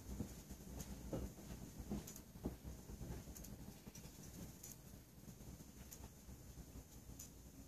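Candle wicks crackle and sputter faintly.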